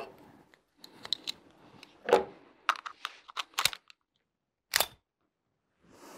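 Metal parts of a pistol click as a man handles it.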